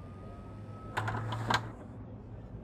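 A wooden door opens with a click.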